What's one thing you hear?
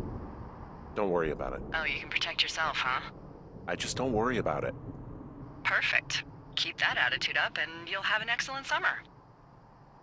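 A young man talks calmly into a close microphone.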